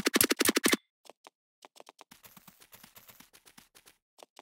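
Blocks are set down with quick, soft clicks.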